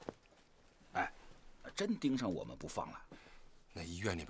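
A middle-aged man speaks in a low, tense voice close by.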